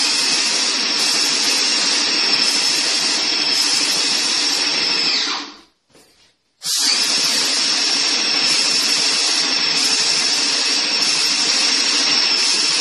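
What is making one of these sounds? A paint sprayer hisses loudly and steadily, cutting out briefly partway through.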